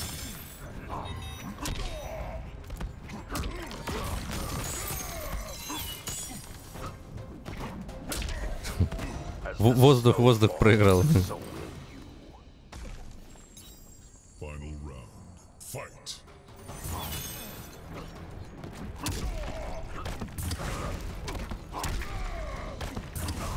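Punches and kicks thud in quick, heavy blows.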